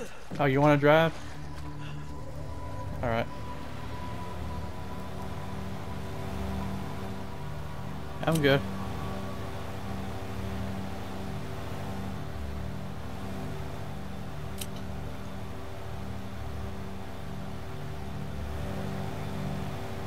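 An airboat engine hums steadily with a whirring fan.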